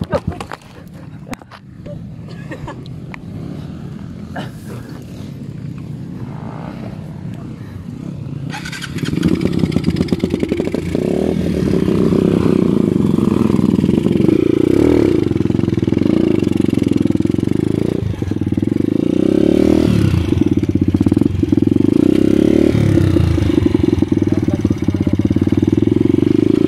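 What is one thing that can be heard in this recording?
A dirt bike engine idles and revs loudly close by.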